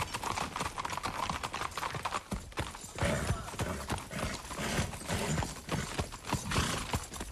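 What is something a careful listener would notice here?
Horse hooves clop on hard ground.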